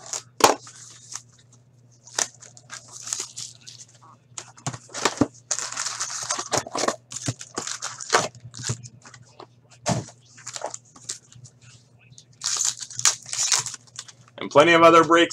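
Plastic wrap crinkles and rustles as it is torn off a box.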